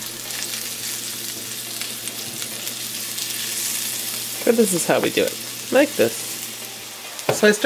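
A spatula scrapes and pushes food around a frying pan.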